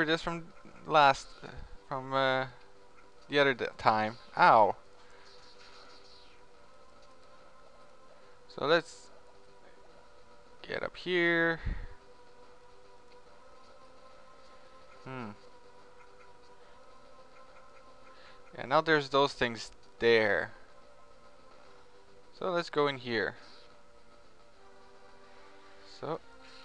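Quiet electronic game music hums steadily.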